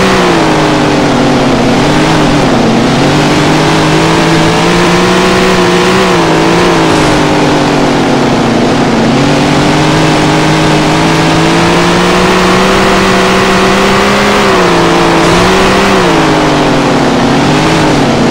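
A race car engine roars loudly, its pitch rising and falling as it speeds up and slows down.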